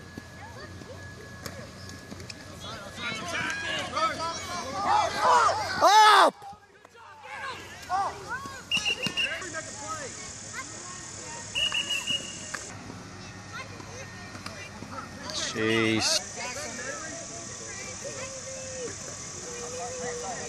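Youth football players' helmets and pads clash as they collide.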